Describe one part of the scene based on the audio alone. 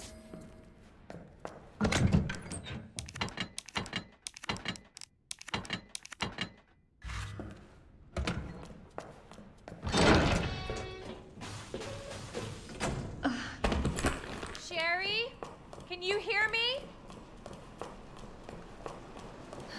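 Footsteps walk on a hard floor.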